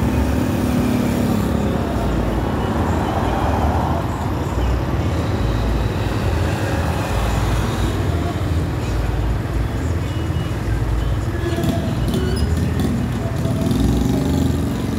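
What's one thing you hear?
Wind rushes and buffets loudly past a moving vehicle.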